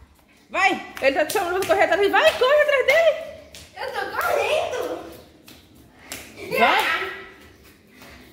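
A young girl talks in a high, excited voice nearby.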